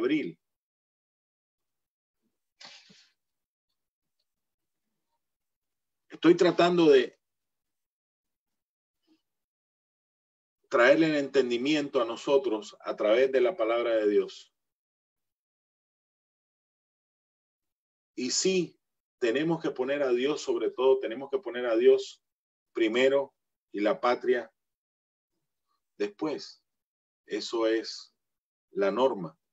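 A middle-aged man speaks with animation over an online call, in bursts with pauses.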